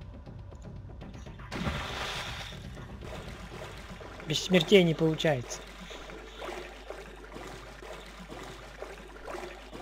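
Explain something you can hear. Waves splash and water churns.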